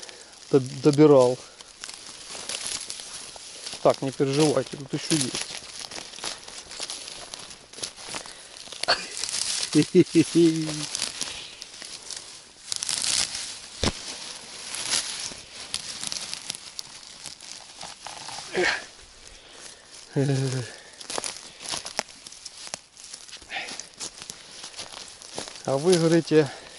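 Dry stalks crackle underfoot.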